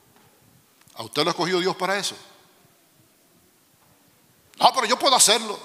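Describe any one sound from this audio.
A middle-aged man speaks calmly into a microphone, heard through loudspeakers in a large room.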